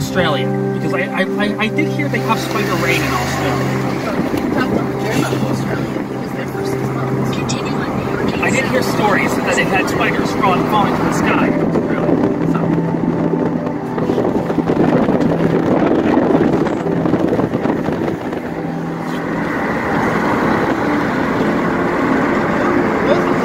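A car drives along a road with a steady hum of tyres and engine.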